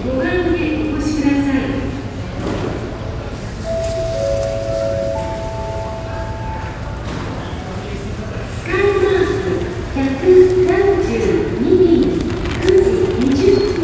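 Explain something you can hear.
A woman makes an announcement over a loudspeaker in a large echoing hall.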